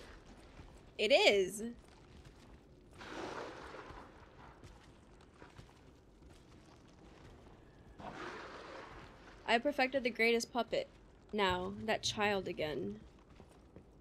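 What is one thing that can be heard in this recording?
A young woman speaks casually into a microphone.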